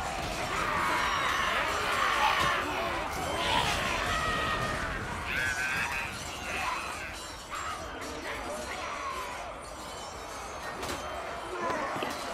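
The footsteps of a huge crowd of warriors rumble across the ground.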